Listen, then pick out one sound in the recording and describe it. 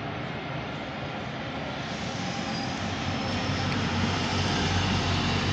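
A bus engine rumbles as the bus drives closer and passes nearby, growing louder.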